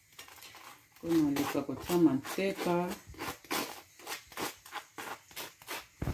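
A knife scrapes butter across crisp toast.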